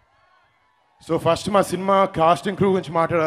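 A man speaks loudly through a microphone over loudspeakers.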